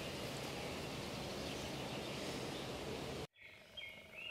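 Wind rushes and buffets outdoors.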